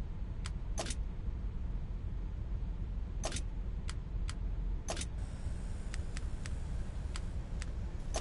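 Short, sharp menu clicks sound as selections change.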